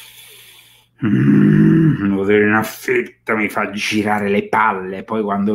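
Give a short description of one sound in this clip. A middle-aged man speaks with animation, close to a microphone.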